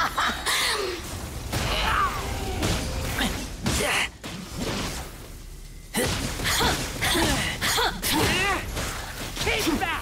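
Heavy impacts thud and boom.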